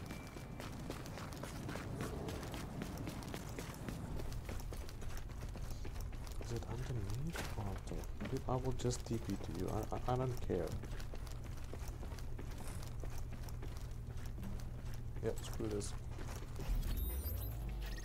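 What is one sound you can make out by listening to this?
Footsteps walk steadily across the ground.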